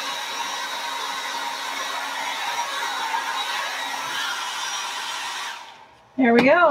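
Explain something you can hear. A hair dryer blows with a steady whirring roar, then switches off.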